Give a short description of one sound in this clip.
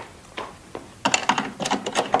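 Knuckles knock on a wooden door.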